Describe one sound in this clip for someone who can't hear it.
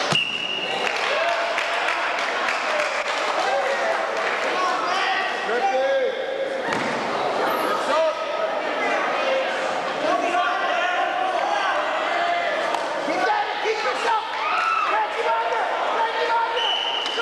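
A crowd cheers and shouts throughout in a large echoing gym.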